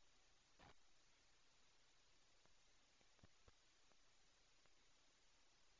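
Objects knock and clatter faintly as they are handled nearby.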